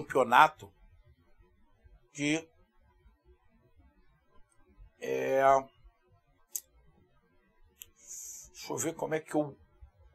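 A middle-aged man speaks into a close microphone in short, animated bursts with pauses between.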